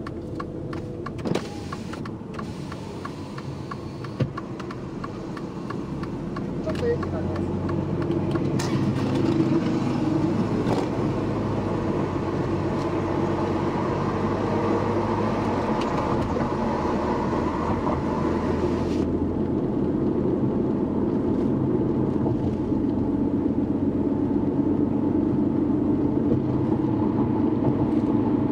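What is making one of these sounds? A car's engine and tyres hum from inside the car as it drives.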